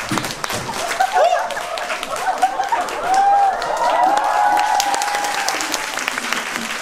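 Young women in the audience scream with excitement.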